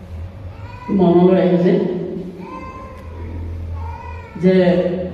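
An elderly man speaks slowly and with emphasis through a microphone in a room with a slight echo.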